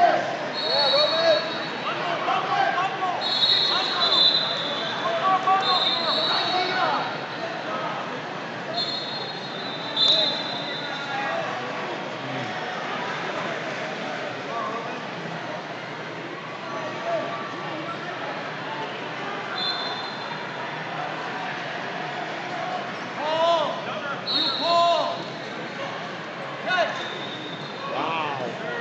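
Men shout encouragement from the side in a large echoing hall.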